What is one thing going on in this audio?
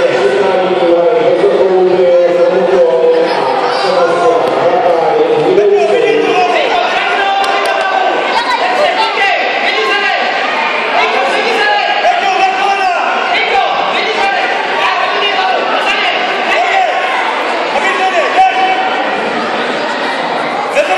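A crowd of children and adults chatters and calls out in a large echoing hall.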